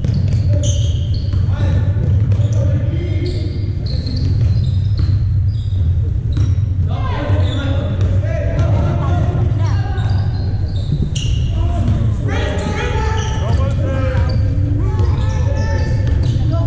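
Players shout and call out in a large echoing hall.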